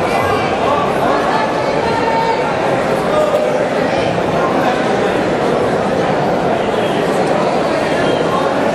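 Spectators shout encouragement from the stands.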